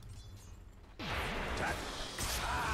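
A magical spell hums and whooshes with a swelling shimmer.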